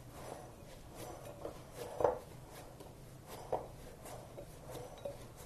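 Hands rub and squeeze dough in a glass bowl with soft, irregular squishing and knocking.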